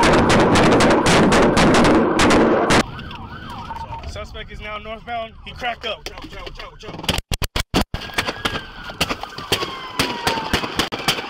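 Rapid gunshots crack loudly close by.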